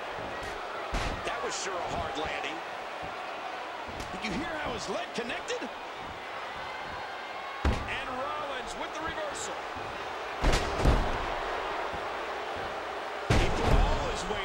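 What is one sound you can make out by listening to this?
Bodies slam heavily onto a wrestling mat.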